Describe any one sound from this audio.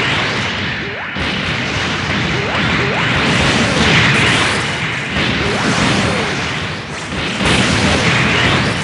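Laser beams blast and roar in rapid bursts.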